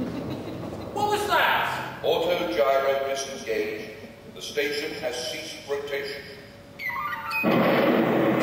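A man speaks animatedly through a microphone.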